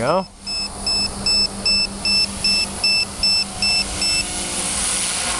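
A small model helicopter buzzes and whines as it flies overhead.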